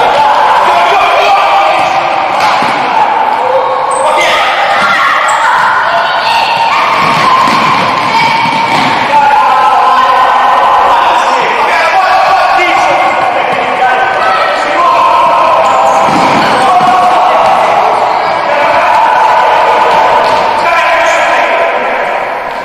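A ball thumps as players kick it in an echoing hall.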